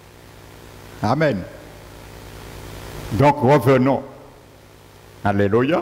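A middle-aged man speaks through a headset microphone in short, deliberate phrases, with pauses between them.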